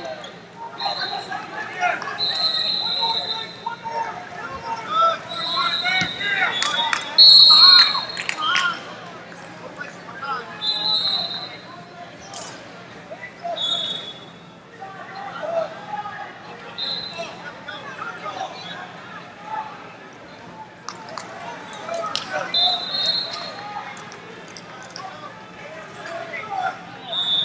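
A crowd of young spectators shouts and calls out encouragement.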